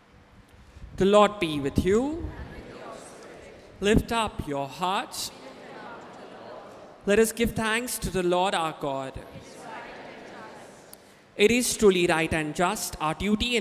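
A man chants through a microphone in a reverberant hall.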